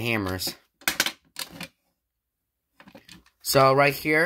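Plastic clicks and clatters as a fire alarm box is opened.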